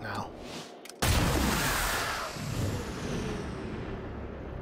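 A gun fires a single loud blast that rings out and fades.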